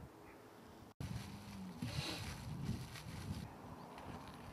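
A plastic glove rustles as it is pulled on.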